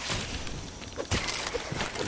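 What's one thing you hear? A magical blast fires with a sharp zap.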